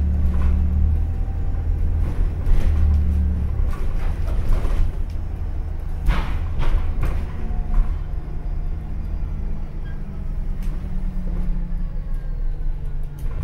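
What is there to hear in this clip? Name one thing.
The inside of a bus rattles and creaks as it moves.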